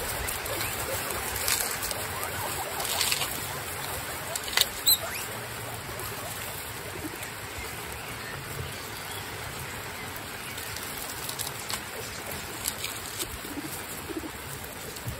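Guinea pigs squeak in short high chirps.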